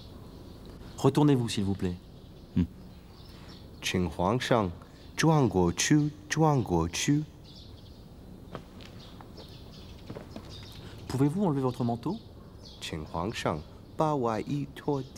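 A man speaks firmly and insistently nearby.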